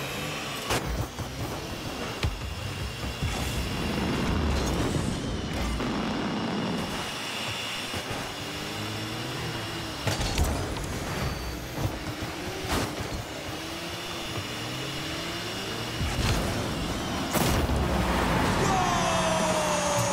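A game car engine hums and roars with boost.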